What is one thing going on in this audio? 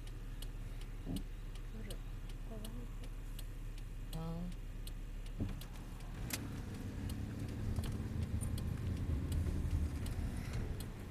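An older woman speaks calmly nearby, inside a car.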